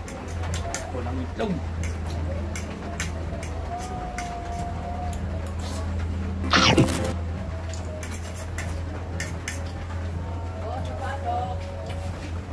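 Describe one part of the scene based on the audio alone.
A young man chews with wet smacking sounds close by.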